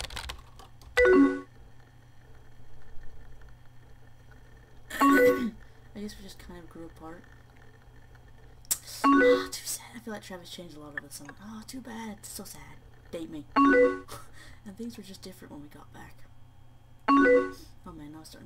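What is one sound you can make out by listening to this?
A short electronic message chime sounds several times.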